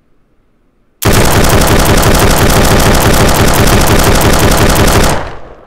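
A rifle fires in a long, rapid, loud burst.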